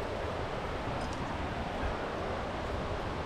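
A metal climbing clip clinks against rock.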